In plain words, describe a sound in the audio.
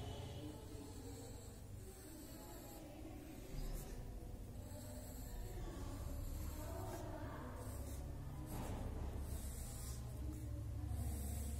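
A pencil scratches lightly across paper.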